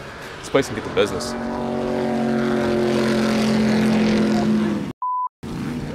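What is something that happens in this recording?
A speedboat engine roars past at high speed.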